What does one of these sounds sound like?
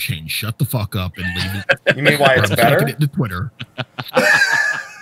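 A man talks with animation over a microphone on an online call.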